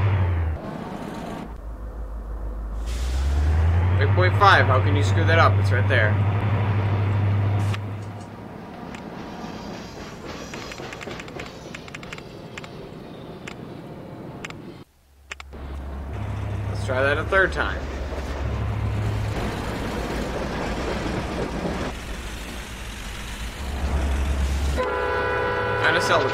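A train engine hums with a low, steady drone.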